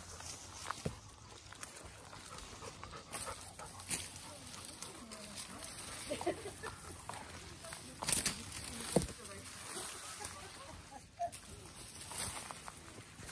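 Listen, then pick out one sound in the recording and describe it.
Dry leaves crunch underfoot as someone walks through undergrowth.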